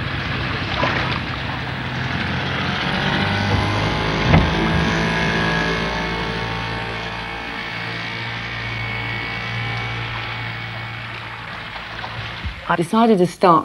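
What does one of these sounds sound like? An outboard motor drones steadily as a small boat moves across the water.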